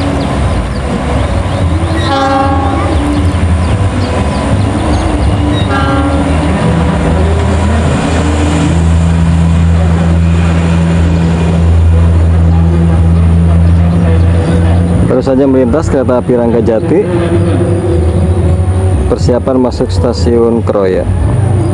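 A train engine rumbles steadily as the train pulls away.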